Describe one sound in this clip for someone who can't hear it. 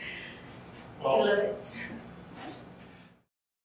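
A young woman laughs happily nearby.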